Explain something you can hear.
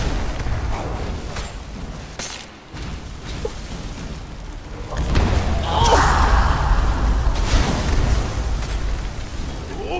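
Fire blasts whoosh.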